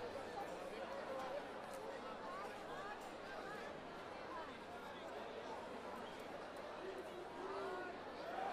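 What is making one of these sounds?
A crowd chatters and calls out nearby.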